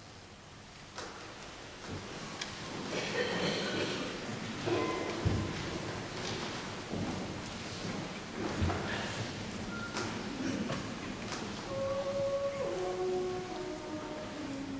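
A large mixed choir sings together in a reverberant hall.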